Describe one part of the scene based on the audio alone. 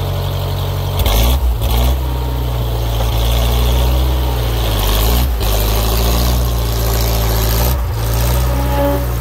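An engine revs up as a heavy machine drives off.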